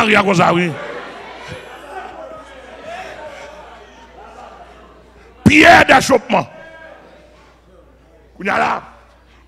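A man speaks loudly and with fervour through a microphone, his voice echoing in a large hall.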